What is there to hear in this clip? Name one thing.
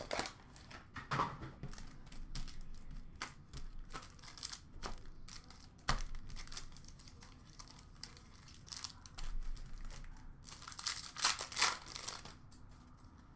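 Plastic card wrappers crinkle and rustle under handling.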